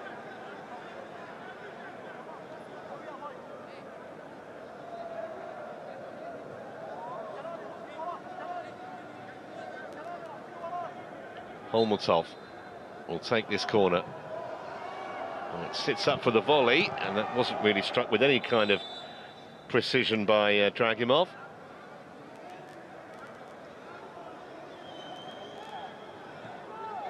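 A small crowd chants and murmurs in an open stadium.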